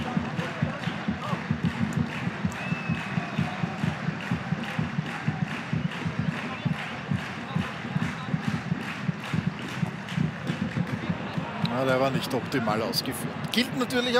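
A large stadium crowd chants loudly in the open air.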